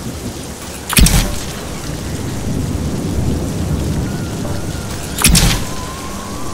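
Two loud gunshots bang out, several seconds apart.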